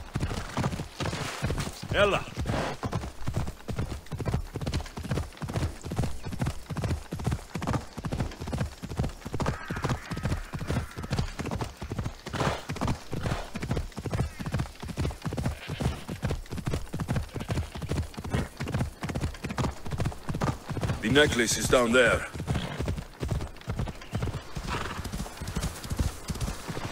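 A horse gallops with fast, steady hoofbeats.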